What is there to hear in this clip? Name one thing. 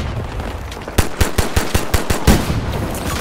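A pistol fires several sharp shots in quick succession.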